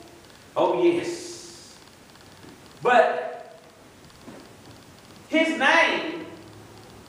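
An elderly man speaks in short, emphatic phrases through a microphone in an echoing hall.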